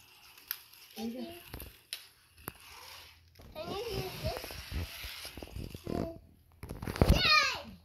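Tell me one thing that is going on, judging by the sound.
A young child talks and squeals close by.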